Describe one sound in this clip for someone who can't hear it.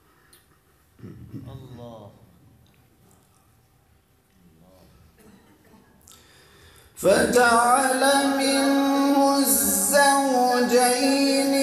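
A man chants a recitation through a microphone in a reverberant room.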